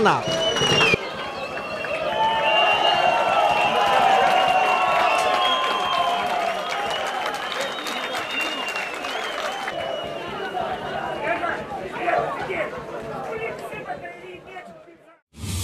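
A crowd of men cheers and chants outdoors.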